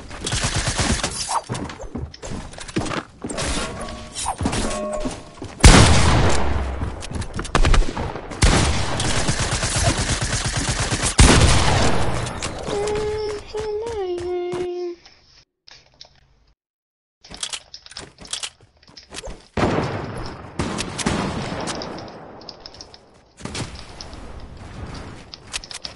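Rapid gunshots crackle in a video game.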